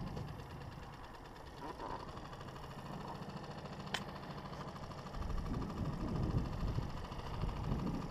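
An outboard motor hums steadily close by.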